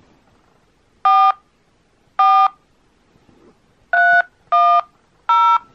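A phone plays a series of short two-note keypad tones.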